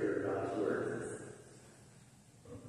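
A man speaks briefly into a microphone in a large echoing hall.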